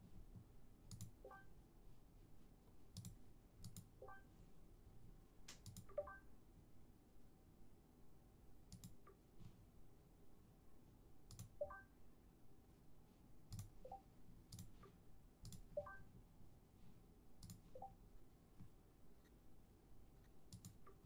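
Short menu clicks sound again and again.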